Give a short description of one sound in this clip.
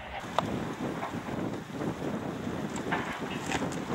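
Laundry flaps in the wind.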